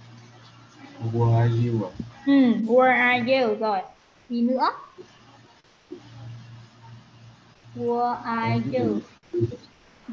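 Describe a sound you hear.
A young woman speaks calmly, heard through an online call.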